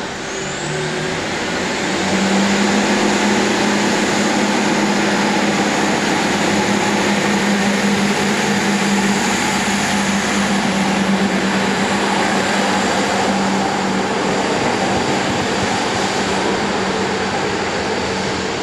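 A diesel train engine drones loudly as the train pulls away close by.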